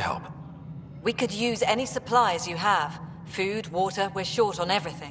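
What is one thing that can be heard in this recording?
A young woman speaks earnestly.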